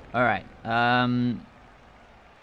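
A young man exclaims briefly into a microphone.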